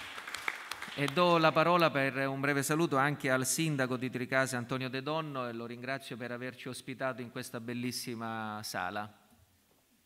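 A man speaks calmly through a microphone.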